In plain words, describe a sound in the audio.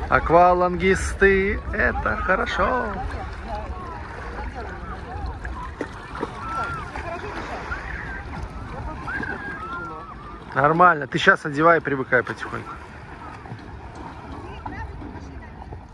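Water splashes around legs wading through shallow sea.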